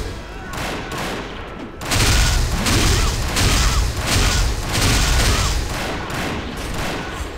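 Blades swish and magic blasts crash in quick bursts.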